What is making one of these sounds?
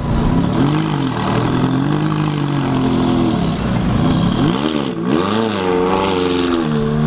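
A sports car engine roars and revs up and down loudly, close by.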